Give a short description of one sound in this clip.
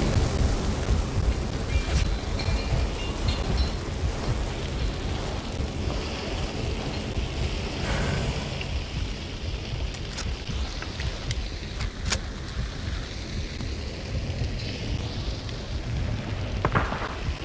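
Flames roar and crackle loudly nearby.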